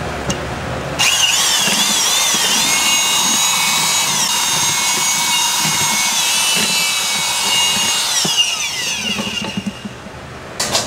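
An electric drill mixer whirs loudly, its whine rising and falling, then winding down.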